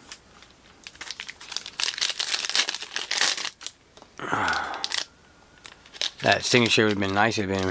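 A foil wrapper crinkles and rustles close by.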